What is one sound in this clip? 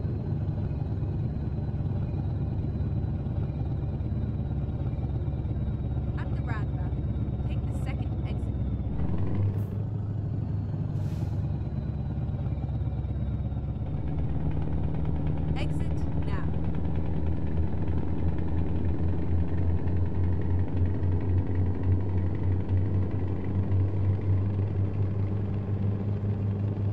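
A truck engine drones steadily through loudspeakers, changing pitch now and then.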